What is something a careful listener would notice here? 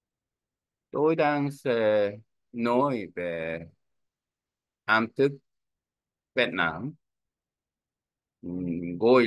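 A young man speaks calmly in short phrases, close to a microphone.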